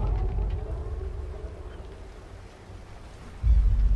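Water laps and splashes against a boat's hull.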